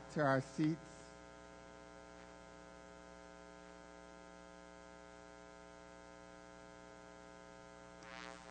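A man speaks through a microphone in a room with a slight echo.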